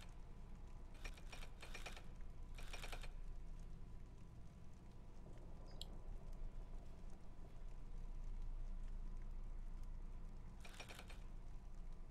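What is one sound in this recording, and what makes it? Metal puzzle dials turn with rapid ratcheting clicks.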